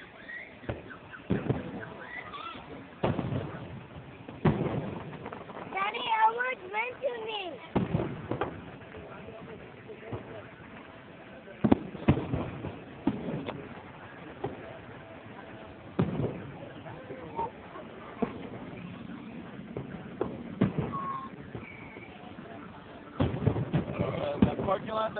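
Fireworks burst with loud booms and crackles, echoing across the open air outdoors.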